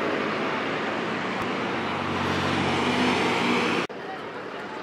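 A bus engine rumbles loudly as the bus passes close by.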